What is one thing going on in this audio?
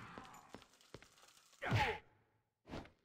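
A sword slashes through a body with a wet thud.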